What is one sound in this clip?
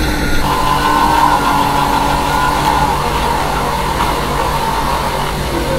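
A car engine hums steadily as it drives along.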